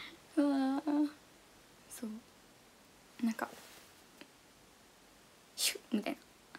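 A young woman speaks softly and brightly into a nearby microphone, in short bursts.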